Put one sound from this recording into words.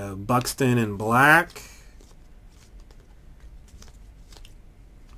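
Trading cards rustle and flick softly as they are shuffled by hand.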